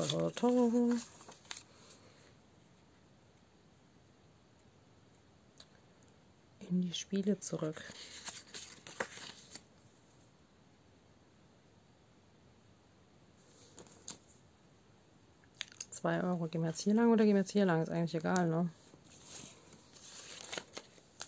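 Paper cards rustle as they are handled.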